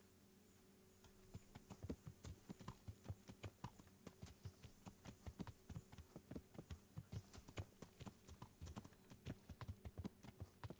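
Horse hooves clop steadily on a stony path.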